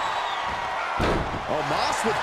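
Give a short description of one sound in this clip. A heavy body slams onto a wrestling mat with a thud.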